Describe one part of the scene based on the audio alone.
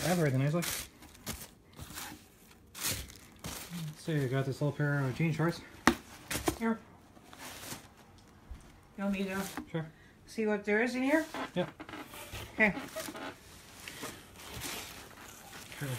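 Clothes rustle as they are handled.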